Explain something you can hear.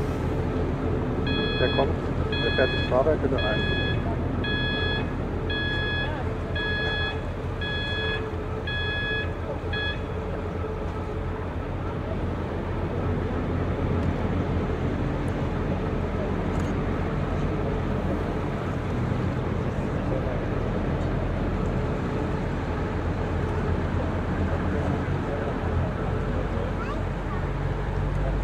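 A jet airliner roars steadily as it approaches overhead.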